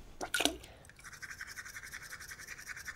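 Water gurgles down a drain.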